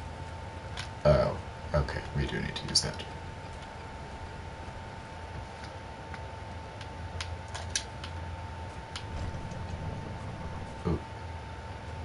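A young man speaks casually into a microphone, close by.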